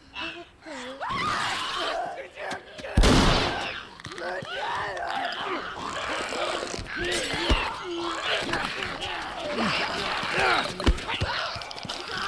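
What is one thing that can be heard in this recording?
Men grunt and shout while fighting at close range.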